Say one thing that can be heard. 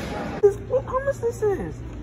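Keyboard keys click.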